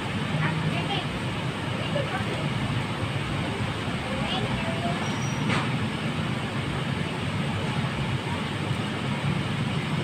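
Paper food wrappers rustle.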